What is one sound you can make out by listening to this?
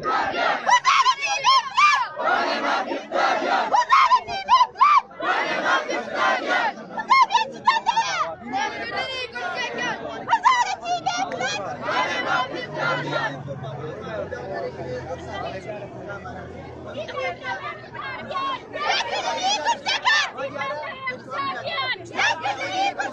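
A crowd of men and women chants loudly together outdoors.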